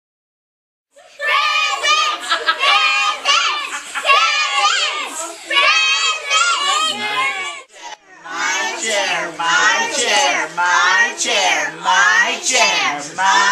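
A group of young children sing loudly together, close by.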